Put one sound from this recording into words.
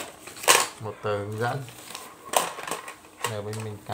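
Paper and plastic wrapping rustle and crinkle close by.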